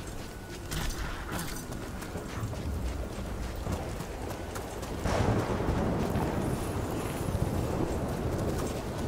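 Footsteps crunch over snowy ground.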